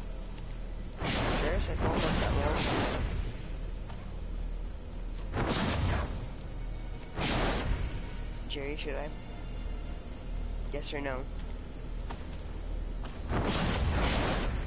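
Weapons fire and blasts go off in loud bursts.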